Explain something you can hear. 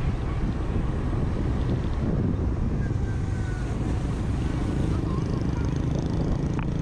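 Other motorbikes whir by on the road nearby.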